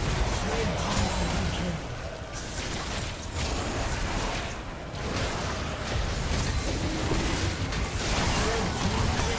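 Magic blasts crackle and burst in a fast fight.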